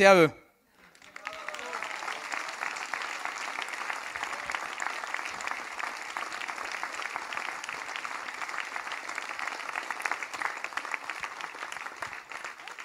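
An audience and choir applaud loudly.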